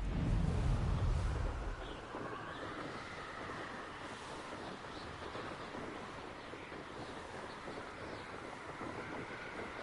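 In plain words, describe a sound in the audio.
Wind rushes steadily past during flight.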